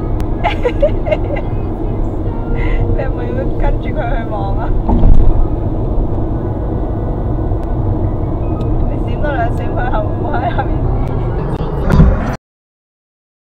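A car engine hums steadily with tyres rumbling on the road.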